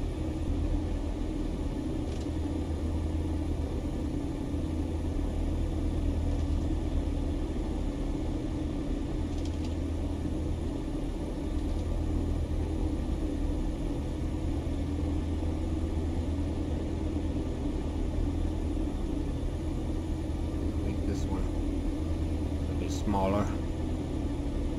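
A small propeller plane's engine drones steadily while taxiing.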